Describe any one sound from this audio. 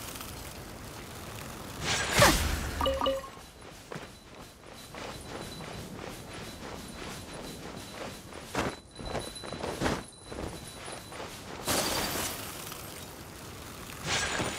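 Magic blasts burst with a bright crackling whoosh.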